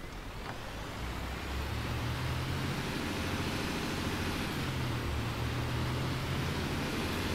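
A diesel city bus engine accelerates, with a deep rising drone.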